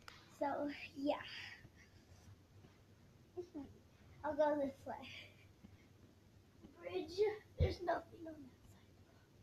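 A young girl talks and laughs close to the microphone in short bursts.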